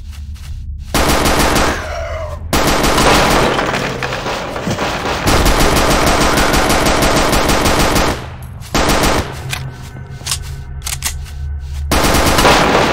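A submachine gun fires rapid bursts that echo in a large stone hall.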